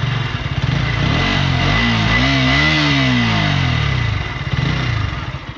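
A motorcycle engine revs up and falls back.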